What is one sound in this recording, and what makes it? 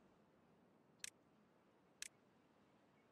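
A game menu clicks softly twice.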